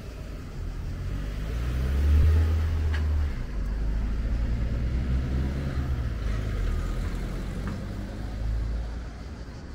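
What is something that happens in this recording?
A car drives past on the road and fades away.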